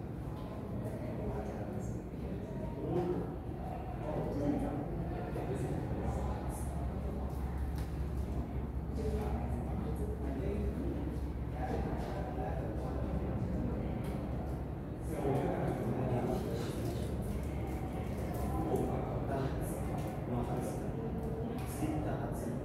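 A man lectures steadily, heard from across a large room.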